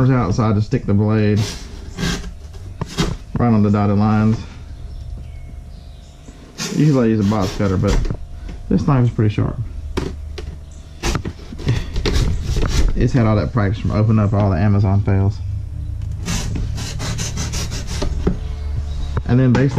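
Cardboard flaps rustle and scrape as a box is handled.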